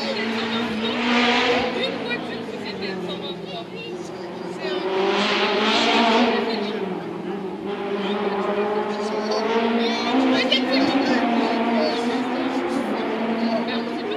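A crowd of spectators chatters in the distance, outdoors.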